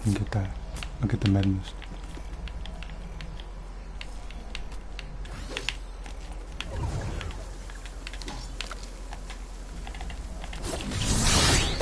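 Footsteps patter quickly over grass.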